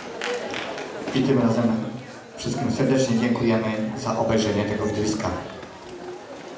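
A young man speaks through a microphone over loudspeakers.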